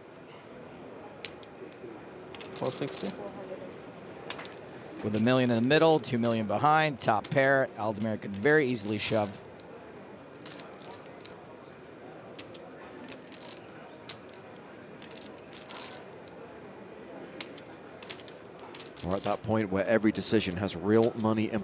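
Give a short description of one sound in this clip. Poker chips click together in a player's hand.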